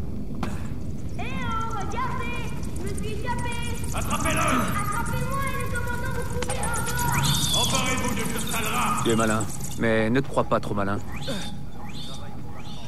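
Footsteps run over a stone floor.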